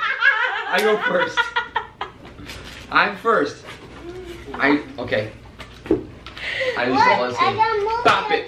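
A young woman laughs and talks excitedly up close.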